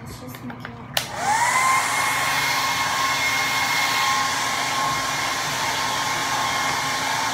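A hair dryer switches on with a click and blows with a steady whirring roar.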